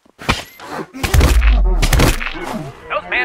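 A heavy blow lands with a dull thud.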